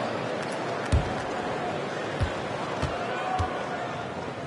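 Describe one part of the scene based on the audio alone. A basketball bounces on a court a few times.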